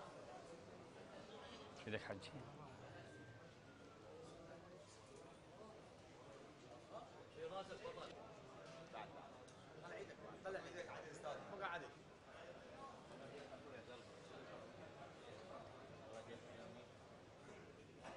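A crowd of men murmurs and talks nearby.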